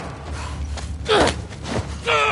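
A man grunts and groans while struggling.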